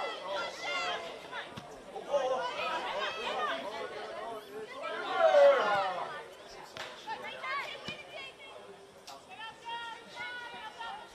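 A football is kicked on a grass field with dull thuds.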